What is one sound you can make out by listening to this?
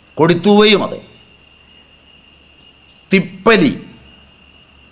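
An elderly man speaks calmly and close by, in short phrases with pauses.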